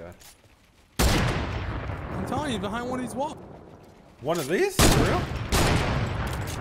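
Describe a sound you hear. Loud rifle shots ring out with a booming echo.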